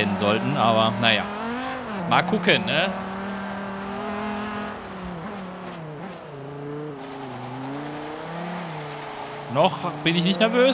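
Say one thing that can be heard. A car engine roars at high revs, sweeping up and down in pitch with quick gear changes.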